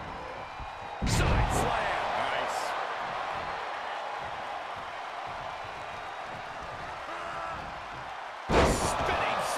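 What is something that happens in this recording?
Bodies slam hard onto a wrestling ring mat with heavy thuds.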